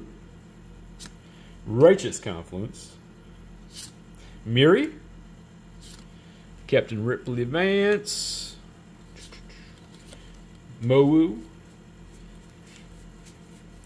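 Playing cards rustle and slide against each other.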